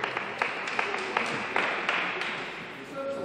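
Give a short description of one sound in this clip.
Spectators clap briefly in a large echoing hall.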